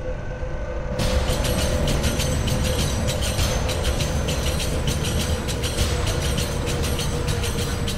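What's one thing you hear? Loud music with a fast, steady beat plays.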